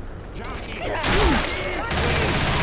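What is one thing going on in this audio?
A monster snarls and screeches up close.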